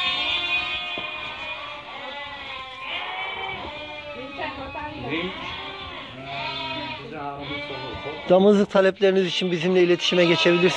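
Many sheep bleat loudly and constantly, close by.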